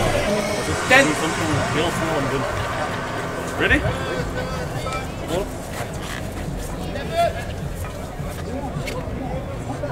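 Players call out to each other across an open field.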